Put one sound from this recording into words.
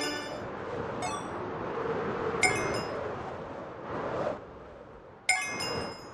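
A bright game chime rings several times.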